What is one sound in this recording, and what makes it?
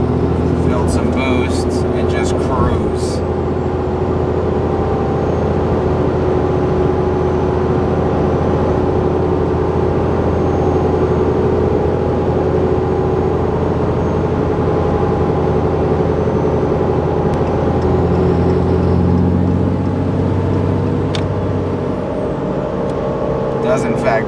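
A truck engine rumbles loudly and steadily at high revs.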